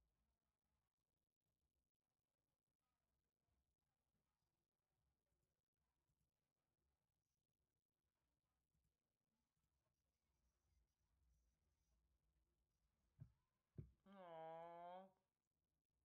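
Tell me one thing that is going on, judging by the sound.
A young man murmurs quietly into a microphone.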